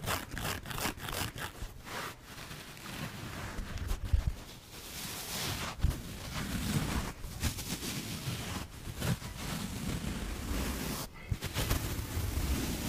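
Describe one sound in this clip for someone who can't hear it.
Sponges squish and rustle as they are squeezed close to the microphone.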